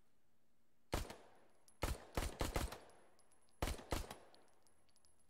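Pistol shots crack sharply in quick bursts.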